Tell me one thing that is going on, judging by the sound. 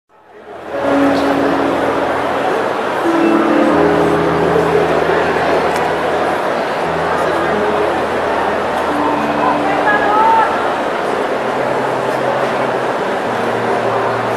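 A man plays an acoustic guitar.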